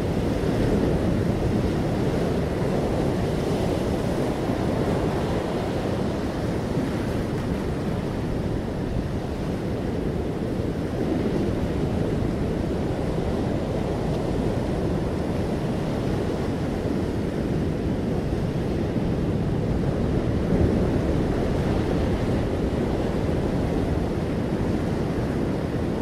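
Wind blows loudly outdoors.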